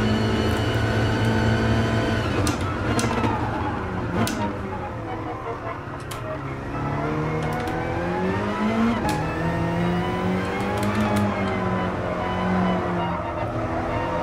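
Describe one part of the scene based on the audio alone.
Racing car engines drone and rev up and down.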